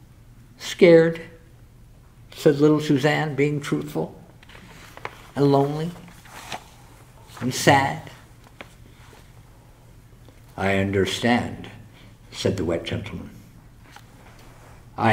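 An older man reads aloud slowly through a microphone, with pauses between phrases.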